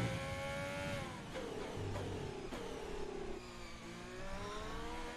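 A racing car engine roars loudly, dropping in pitch as the car slows and then climbing again.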